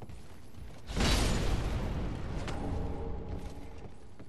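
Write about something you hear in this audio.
A sword slashes and strikes an enemy.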